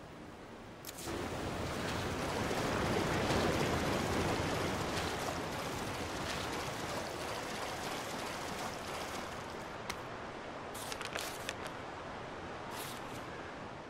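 Footsteps splash through shallow water in an echoing tunnel.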